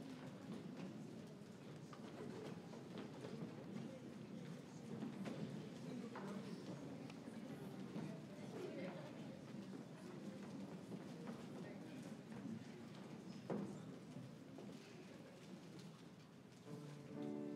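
A large choir of young singers sings together into microphones in a large hall.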